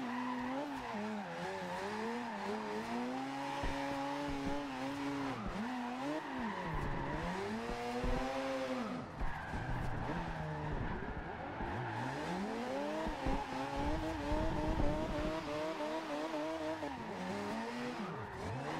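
A sports car engine revs up and down as the car drifts through corners.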